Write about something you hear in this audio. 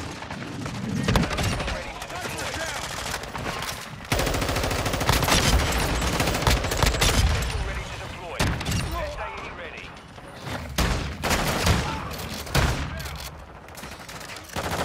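Rapid gunfire bursts ring out.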